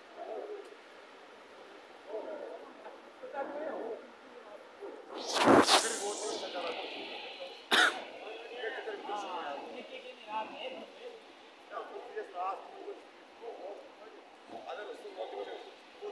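A man talks excitedly close by.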